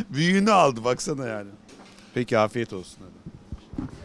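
A middle-aged man laughs close to a microphone.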